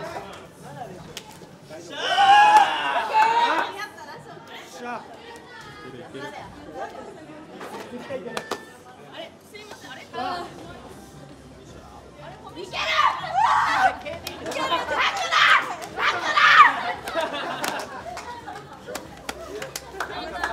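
Young men and women chatter and call out excitedly nearby.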